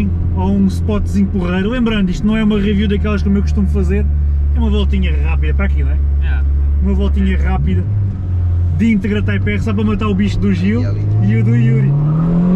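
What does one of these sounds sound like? A man talks with animation close by inside a car.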